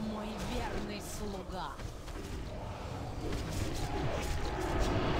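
Magic spells whoosh and clash in a busy fight.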